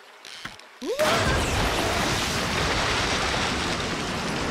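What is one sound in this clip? A large fish bursts out of water with a loud, rushing splash.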